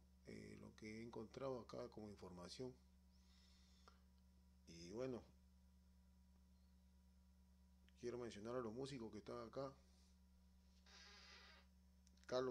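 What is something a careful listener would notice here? A turntable plays a record through speakers, in short bursts with pauses.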